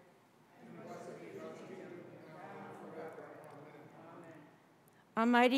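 A woman speaks calmly through a microphone, reading out, in a reverberant room.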